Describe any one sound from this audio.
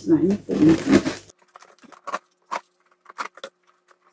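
Scissors snip at cardboard.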